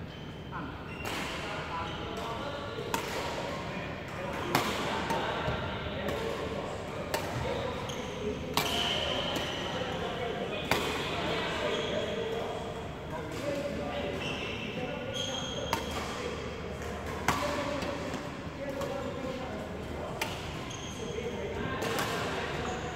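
Shuttlecocks are struck with rackets, each hit a sharp smack echoing in a large hall.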